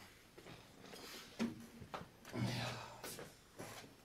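A wooden chair scrapes and knocks on the floor.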